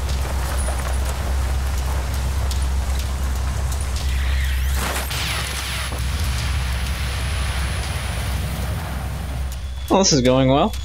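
Wind roars steadily in a sandstorm.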